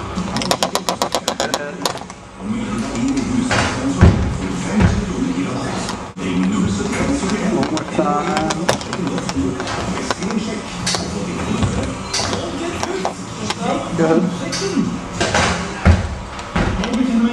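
Sneakers thump on an exercise step.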